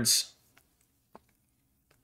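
Trading cards slide and tap softly against each other.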